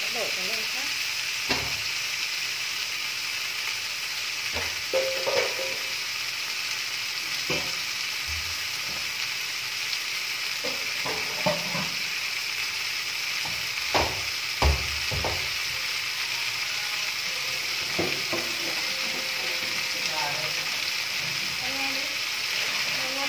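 Meat sizzles steadily in a frying pan.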